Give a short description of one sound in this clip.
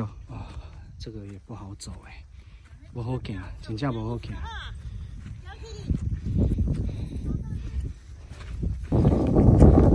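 Hikers' footsteps brush through wet grass.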